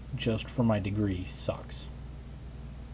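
A man speaks briefly and casually into a nearby microphone.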